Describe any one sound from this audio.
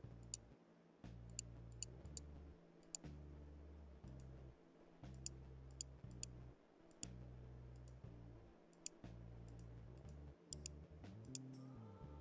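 Short electronic clicks sound as a game's circles are tapped.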